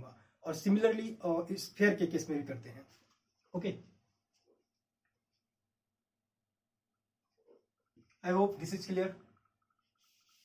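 A young man lectures calmly, close by.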